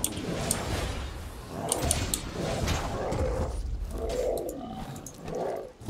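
Heavy weapon blows thud and clash.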